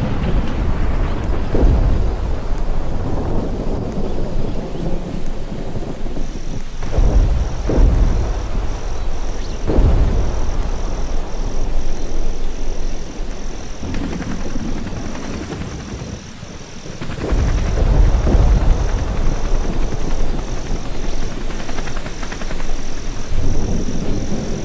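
Fire roars and crackles nearby.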